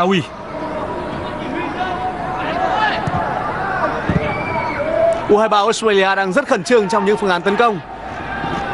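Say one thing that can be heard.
A large stadium crowd chants and cheers in the distance.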